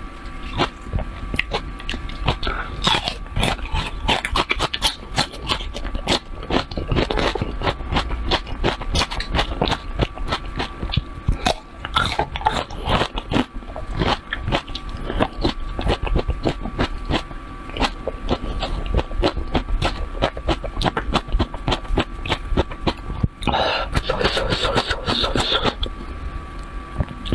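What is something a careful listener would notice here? A woman chews and crunches food close to a microphone.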